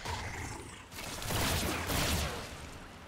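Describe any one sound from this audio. Blades clash and swish in a fight.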